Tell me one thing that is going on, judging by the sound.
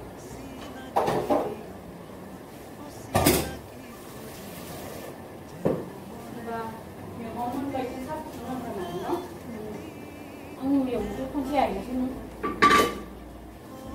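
Metal pans clank against a stove.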